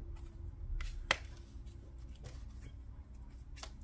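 A card is laid down softly on a table.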